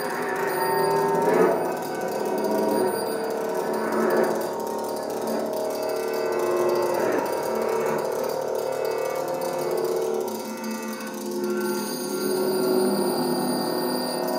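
A pedal steel guitar plays long, sliding notes.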